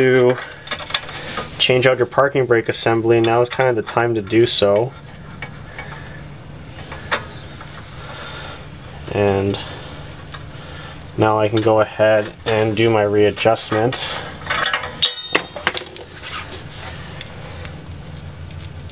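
Metal parts clink and scrape as hands work on a wheel hub.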